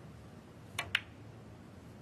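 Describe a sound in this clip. Snooker balls click against each other.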